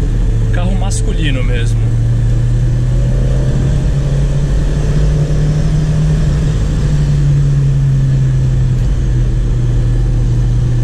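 Tyres roll over the road with a steady rumble.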